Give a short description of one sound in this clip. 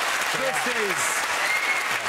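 A man exclaims with animation over the applause.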